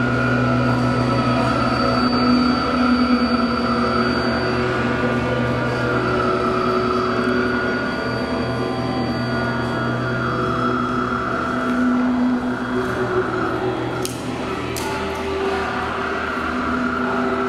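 A man plays slow, sustained notes on an electric stringed instrument.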